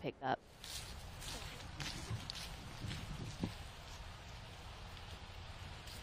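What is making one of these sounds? Footsteps swish softly on grass.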